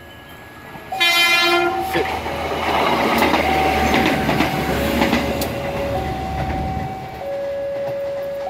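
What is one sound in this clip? A train rumbles and clatters past on the tracks close by.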